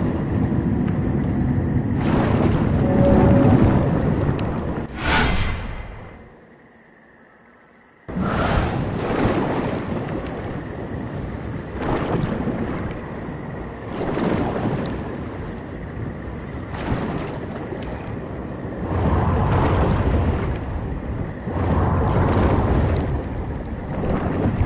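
An armoured warrior dashes with a rushing whoosh.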